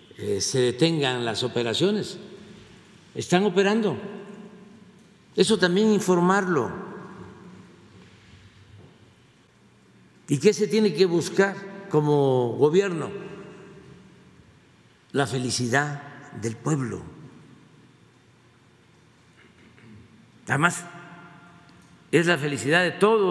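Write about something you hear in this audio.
An elderly man speaks deliberately into a microphone, pausing between phrases, in a room with some echo.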